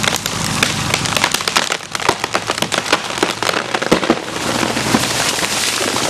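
A tree trunk cracks and splinters as it starts to topple.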